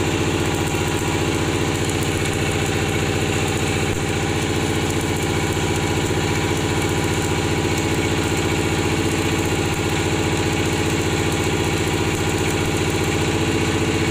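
An electric welding arc buzzes and crackles steadily, close by.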